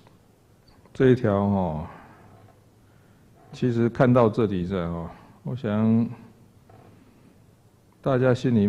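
A middle-aged man speaks slowly and deliberately into a microphone, in short bursts with pauses.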